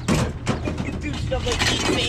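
Metal pipes clatter as they are shoved across a wooden truck bed.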